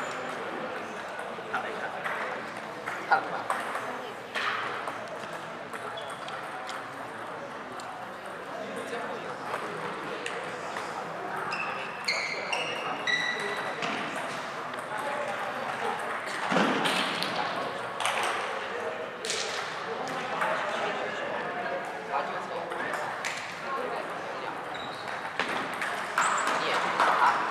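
Ping-pong balls click on tables and paddles.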